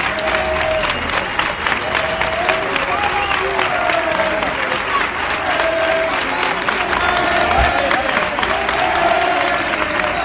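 A crowd chants and sings loudly together.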